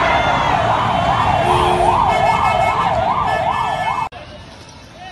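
A fire engine siren wails up and down.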